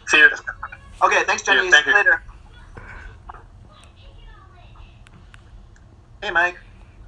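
A man speaks through a laptop speaker.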